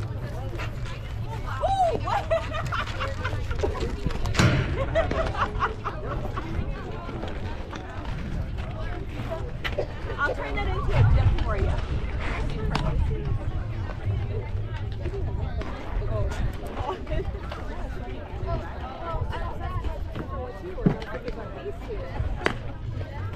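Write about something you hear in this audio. Young women call out to each other across an open field.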